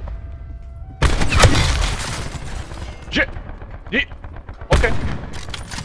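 A sniper rifle fires loud single shots.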